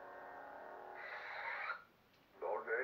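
A toy lightsaber powers down with a sharp electronic hiss.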